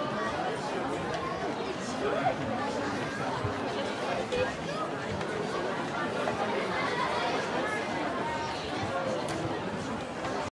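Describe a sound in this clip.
Musicians play ringing handpan drums.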